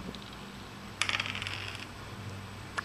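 Dice rattle briefly as they roll.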